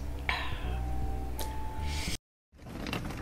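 A woman sips and swallows close to a microphone.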